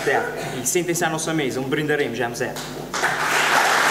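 A man sings through a microphone in a large hall.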